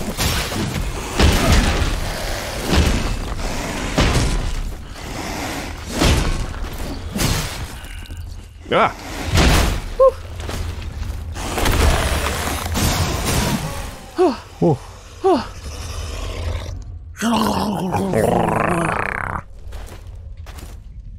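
Footsteps crunch through snow.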